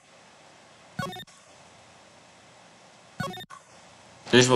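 Short electronic chimes sound.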